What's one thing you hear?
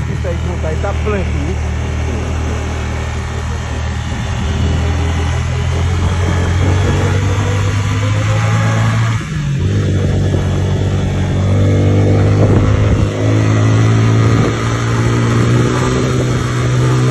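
A motorbike engine hums steadily at close range.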